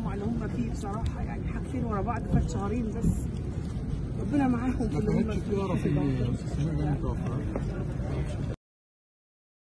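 A woman speaks close to microphones.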